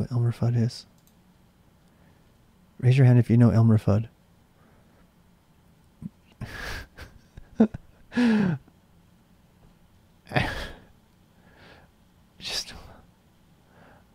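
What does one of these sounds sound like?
A middle-aged man talks with animation into a close microphone, in short bursts.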